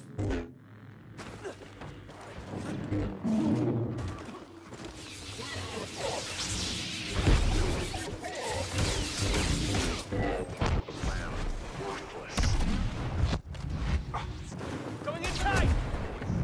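Laser swords hum and clash with sharp buzzing strikes.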